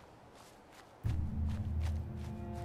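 Footsteps rustle through tall grass.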